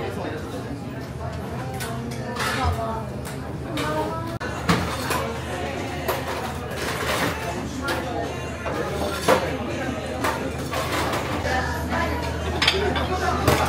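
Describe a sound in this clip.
Food sizzles in pans on a stove.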